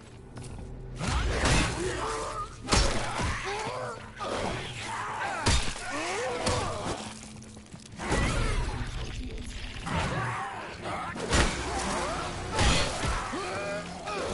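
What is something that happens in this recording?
A creature screeches and snarls.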